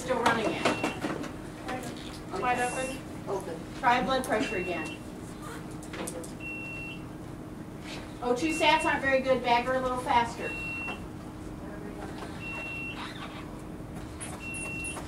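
A patient monitor beeps at a steady, regular pace.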